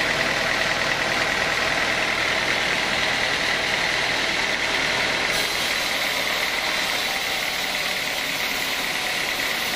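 A band saw whines steadily as it cuts through a wooden beam.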